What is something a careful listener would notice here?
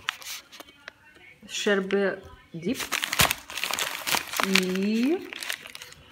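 Plastic packaging crinkles and rustles.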